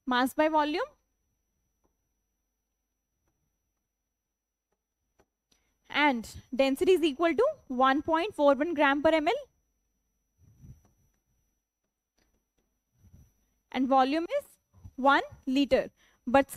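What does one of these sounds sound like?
A young woman explains with animation, speaking close to a microphone.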